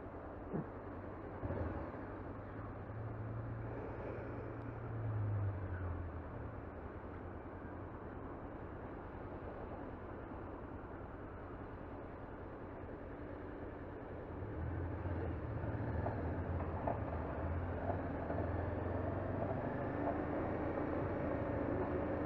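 Wind rumbles past a helmet.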